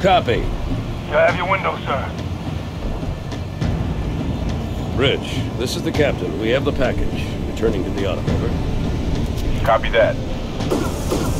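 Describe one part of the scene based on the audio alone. A man speaks calmly over a crackling radio.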